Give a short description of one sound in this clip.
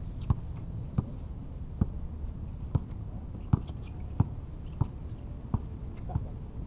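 A basketball bounces sharply on hard pavement.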